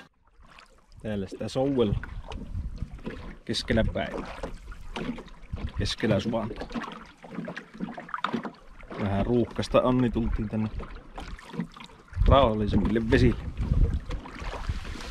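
A man talks calmly and close up, outdoors in wind.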